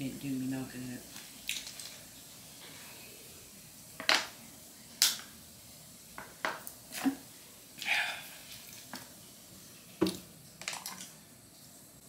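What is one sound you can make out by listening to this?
A plastic water bottle crinkles and its cap twists.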